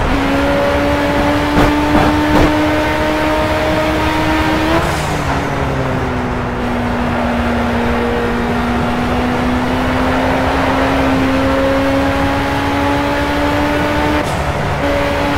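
A racing car engine roars steadily, dropping in pitch as gears shift and climbing again.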